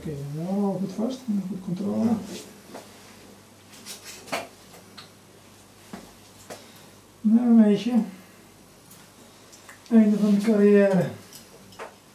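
A man speaks nearby in short phrases.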